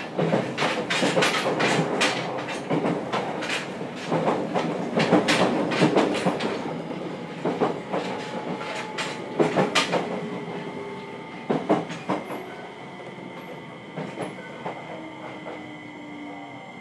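A train's wheels clack rhythmically over rail joints.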